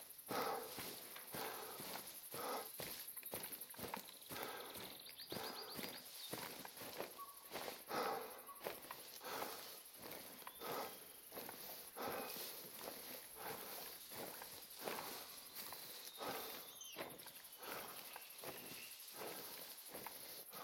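Footsteps rustle through dry grass.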